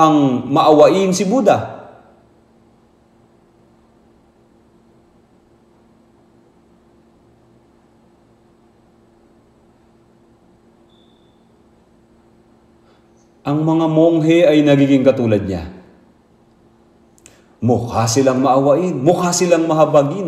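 An elderly man speaks with animation through a microphone, pausing between phrases.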